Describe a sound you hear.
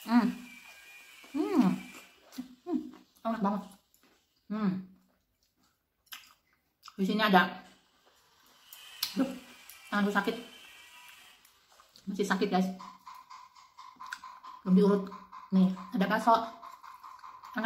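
A woman slurps and chews food noisily.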